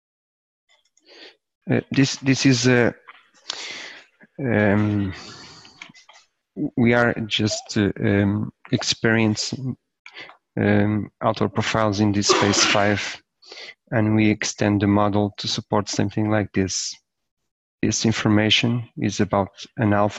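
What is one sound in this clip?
A man speaks calmly and steadily into a close microphone.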